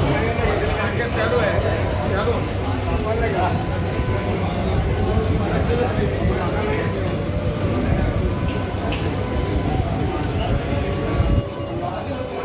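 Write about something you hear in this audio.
A man speaks loudly to a gathering.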